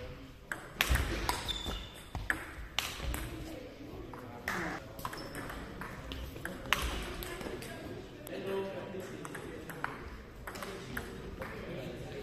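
A ping-pong ball clicks back and forth between paddles and table.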